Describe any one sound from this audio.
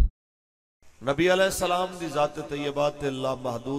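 A young man chants in a pitched voice into a microphone, heard through a loudspeaker.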